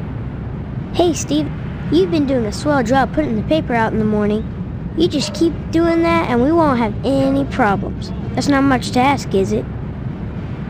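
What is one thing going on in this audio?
A young boy speaks cheerfully.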